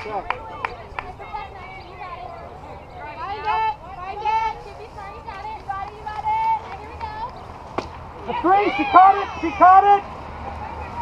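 Young women cheer and chant loudly nearby.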